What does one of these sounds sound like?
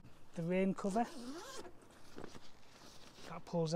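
A zip is pulled open on a fabric bag.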